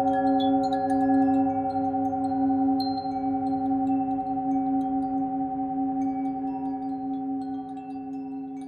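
A singing bowl rings with a steady, humming tone that slowly fades.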